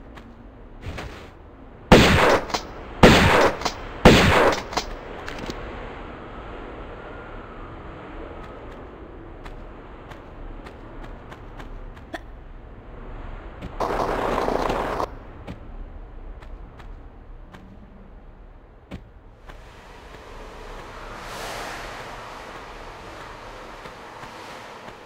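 Footsteps tap quickly on a stone floor.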